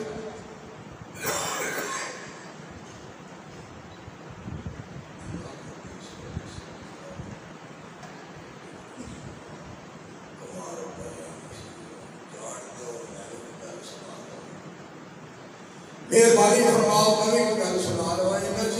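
A man chants with feeling into a microphone, heard through loudspeakers in an echoing hall.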